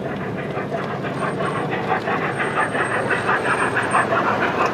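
A model steam locomotive chuffs rhythmically as it rolls out of a tunnel.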